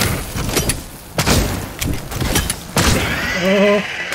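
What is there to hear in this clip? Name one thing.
A creature bursts apart with a loud explosion.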